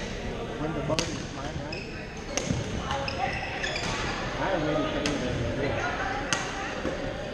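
Paddles hit a plastic ball with sharp pops.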